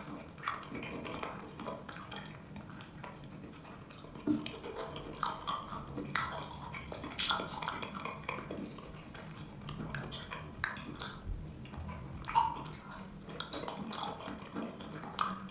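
A metal spoon scrapes and clinks against a bowl.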